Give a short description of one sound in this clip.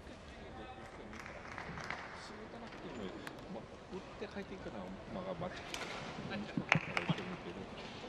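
A man talks calmly nearby in a large echoing hall.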